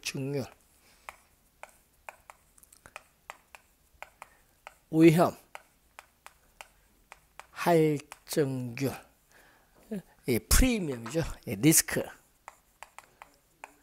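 Chalk taps and scratches on a board.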